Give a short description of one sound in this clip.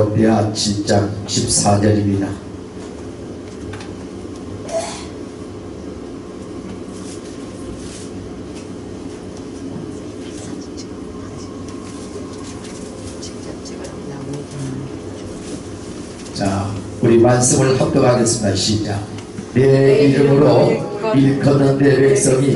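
A middle-aged man speaks with emphasis into a microphone, heard through loudspeakers in an echoing hall.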